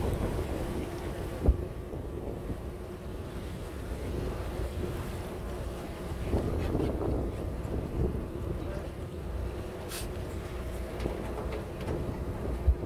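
Small waves lap and splash nearby.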